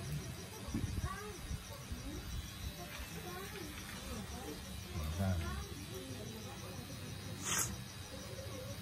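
A tattoo machine buzzes steadily close by.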